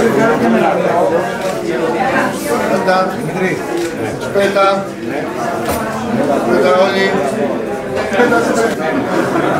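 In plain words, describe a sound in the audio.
Several men and women talk over one another in a room.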